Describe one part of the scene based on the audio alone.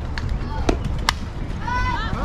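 A bat strikes a softball with a sharp crack.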